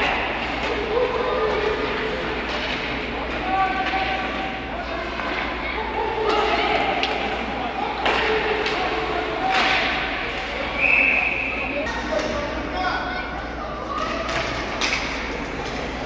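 Spectators chatter in an echoing rink.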